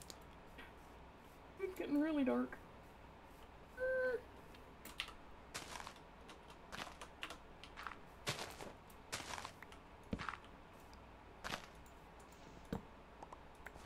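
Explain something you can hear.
Footsteps crunch softly on grass.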